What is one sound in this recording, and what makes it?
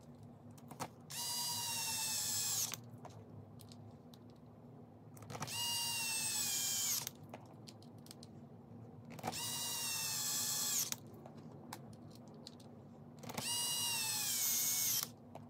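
An electric screwdriver whirs in short bursts, its pitch sagging slightly.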